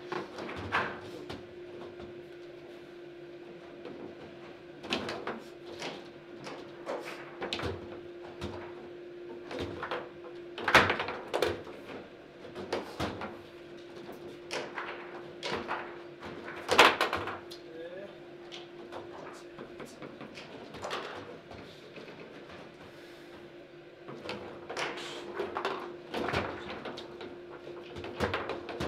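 A foosball ball cracks against rods and walls with sharp knocks.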